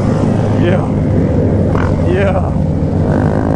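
Motorcycle engines rev and whine around.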